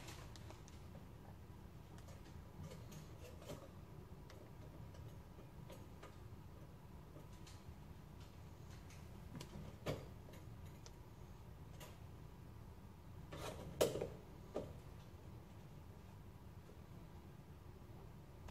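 Objects knock and clatter at a drip coffee maker.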